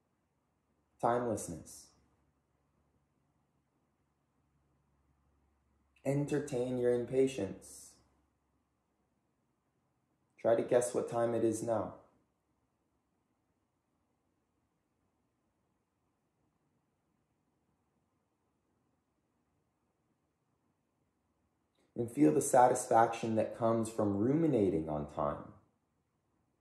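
A man speaks calmly and softly, close by, in short phrases with long pauses.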